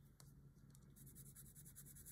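A coloured pencil scratches lightly on paper.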